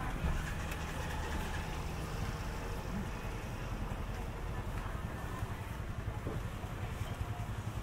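Motorbikes ride past along a street.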